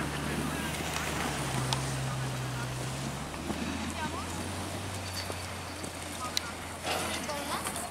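Skis scrape and carve on hard-packed snow.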